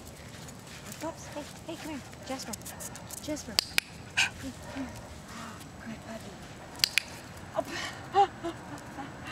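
Small dogs whine and yip in short, high bursts.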